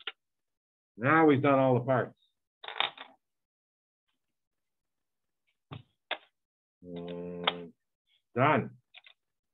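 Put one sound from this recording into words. A middle-aged man speaks calmly through an online call microphone, in short bursts.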